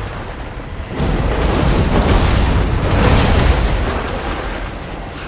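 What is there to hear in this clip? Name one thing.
A fiery spell blasts with a loud rumbling roar.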